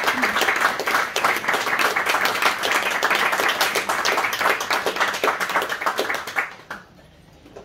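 A small group applauds close by, then stops.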